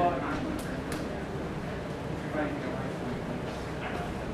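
Hands slap and grab against clothing.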